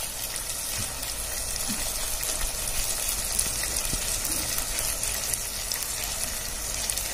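Oil sizzles and crackles steadily in a hot pot.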